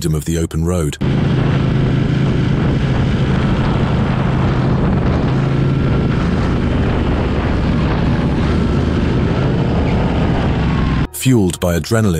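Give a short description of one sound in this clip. A motorcycle engine drones steadily at speed.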